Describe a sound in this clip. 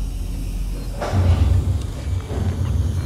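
Heavy metal doors slide open with a whoosh.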